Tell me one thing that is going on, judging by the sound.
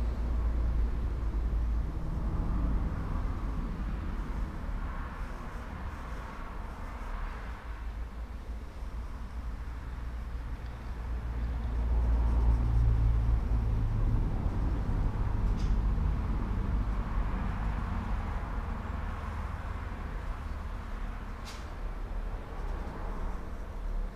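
A pencil scratches softly on wood.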